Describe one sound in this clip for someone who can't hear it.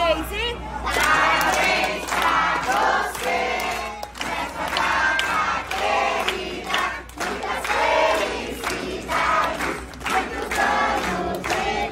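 People clap their hands in a steady rhythm.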